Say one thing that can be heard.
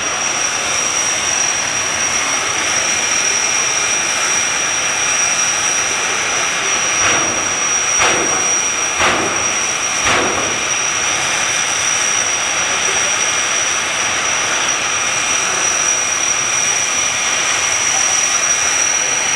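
A dragster engine roars loudly and steadily nearby.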